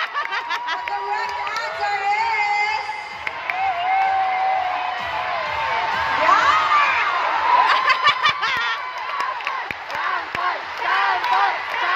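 A large crowd screams and cheers loudly.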